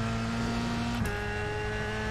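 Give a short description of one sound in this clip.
A racing car engine drops in pitch with a quick gear shift.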